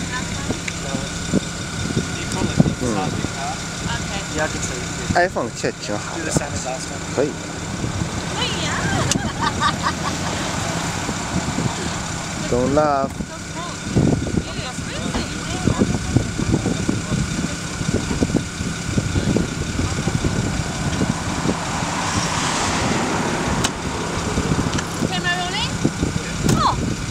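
Men and women talk and laugh nearby outdoors.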